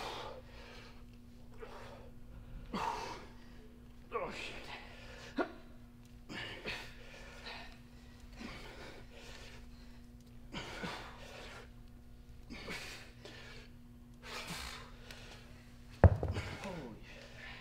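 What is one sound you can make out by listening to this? Men exhale sharply and rhythmically as they lift weights overhead.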